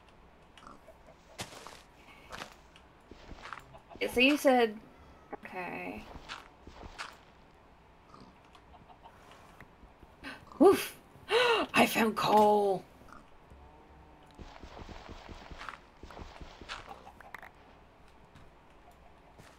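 Dirt and stone are dug out with soft, repeated crunching taps.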